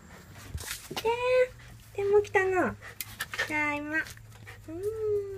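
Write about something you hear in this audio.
A cat meows loudly up close.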